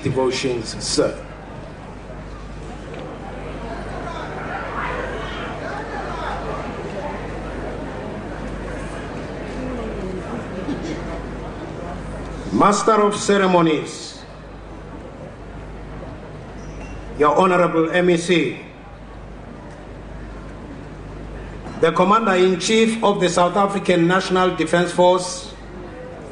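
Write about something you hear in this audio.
A man speaks loudly through a microphone in short bursts with long pauses, heard over a public address system.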